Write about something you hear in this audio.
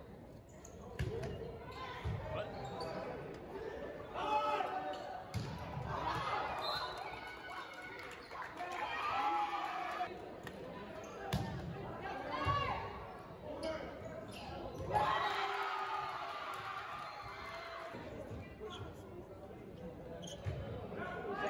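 A volleyball is struck with sharp slaps that echo around a large hall.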